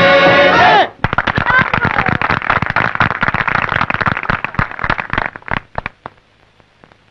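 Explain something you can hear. An audience claps and applauds in a large room.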